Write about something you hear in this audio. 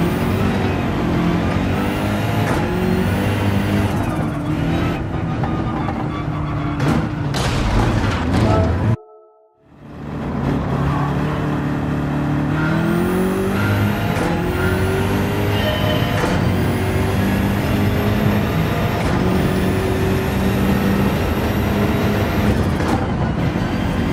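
A racing car engine roars, revving up and down through the gears.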